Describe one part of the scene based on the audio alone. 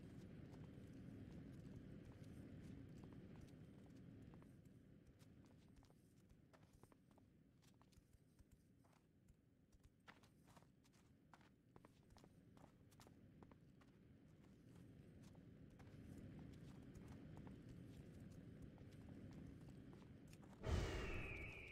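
Footsteps patter as a video game character runs.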